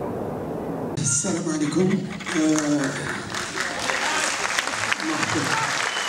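A man speaks through a microphone and loudspeakers in a large hall.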